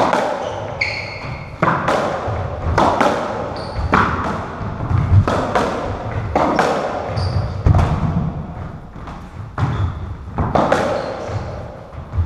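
Shoes squeak sharply on a wooden floor.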